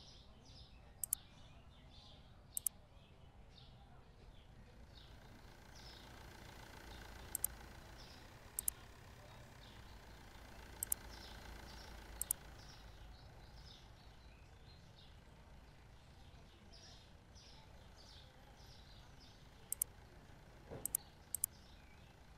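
Sharp menu clicks sound now and then.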